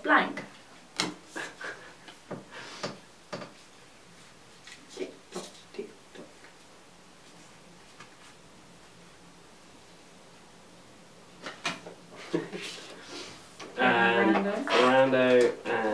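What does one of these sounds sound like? Playing cards slap and shuffle on a table.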